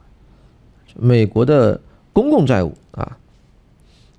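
A middle-aged man speaks calmly into a headset microphone.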